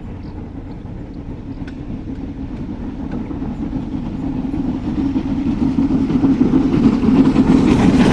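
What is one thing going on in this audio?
A steam locomotive chuffs steadily, growing louder as it approaches.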